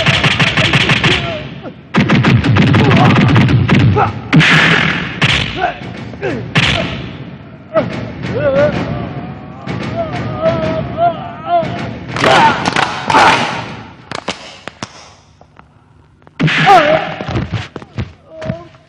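Punches land with loud thuds and slaps.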